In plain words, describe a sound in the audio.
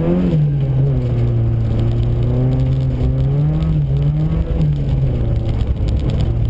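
A car engine hums loudly and steadily from inside the car.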